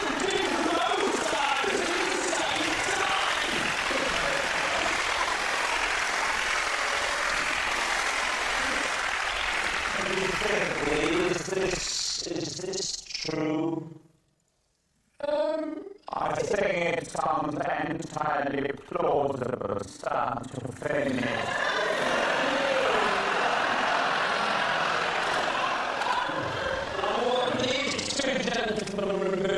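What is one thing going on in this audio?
A studio audience laughs loudly.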